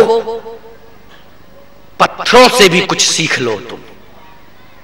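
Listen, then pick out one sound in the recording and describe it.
A man speaks with animation through a microphone, heard over a loudspeaker.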